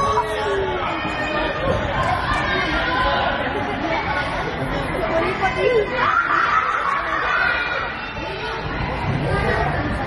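A futsal ball is kicked on a gym floor.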